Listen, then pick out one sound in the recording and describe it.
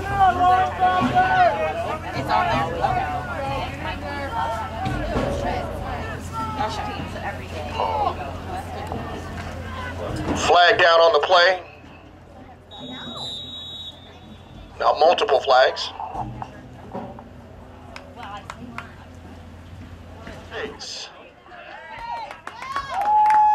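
A crowd of adults and children shouts and cheers outdoors.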